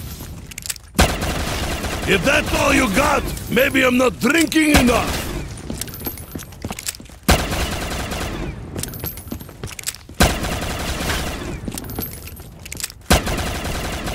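A pistol fires loud single shots.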